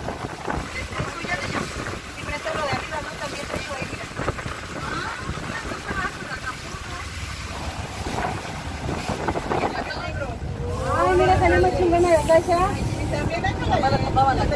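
A boat engine rumbles steadily.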